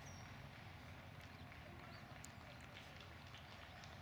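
Runners' footsteps patter on the pavement as they pass.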